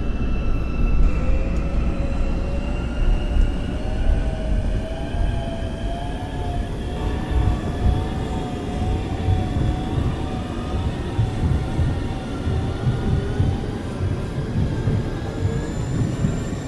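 A train's electric motors whine, rising in pitch as the train speeds up.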